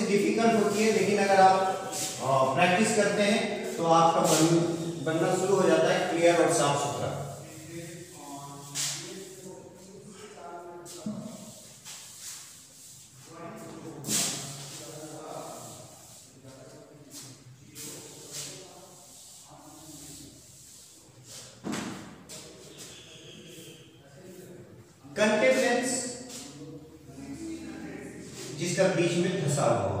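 A man explains calmly.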